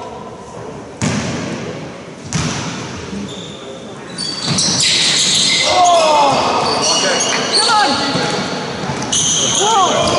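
A basketball bounces on the floor with echoing thuds.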